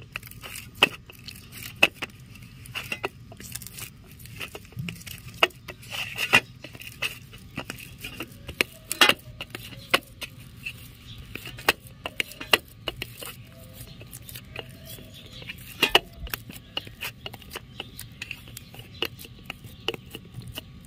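Dough thumps and taps on a metal plate.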